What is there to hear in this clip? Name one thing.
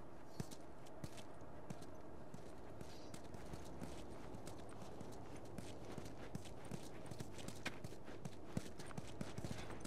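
Footsteps tap and scuff on a hard ground.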